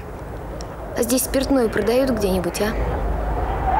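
A young woman speaks briefly and quietly, close by.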